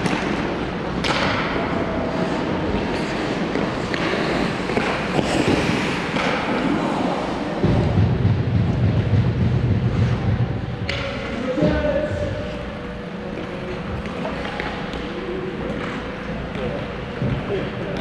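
Hockey sticks clack against pucks and the ice.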